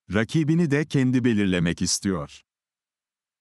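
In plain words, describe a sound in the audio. An older man reads out calmly, close to a microphone.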